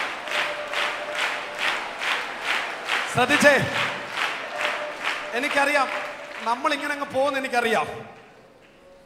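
A crowd claps in a steady rhythm in a large echoing hall.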